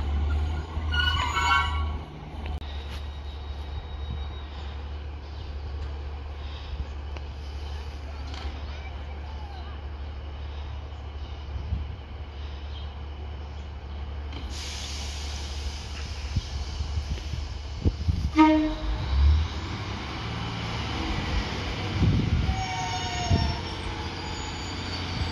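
A diesel railcar's underfloor engine idles with a low throb.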